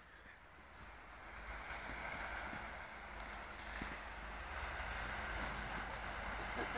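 A sled scrapes and hisses over snow.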